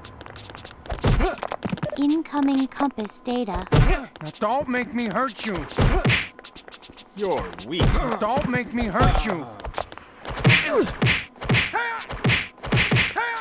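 Punches and kicks land with sharp thuds in a fistfight.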